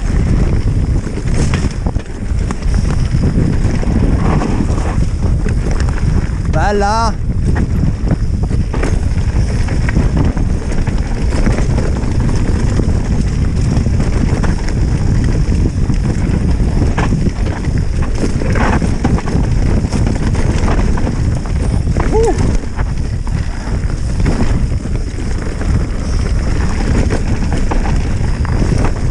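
Wind buffets a microphone with a loud, steady rumble.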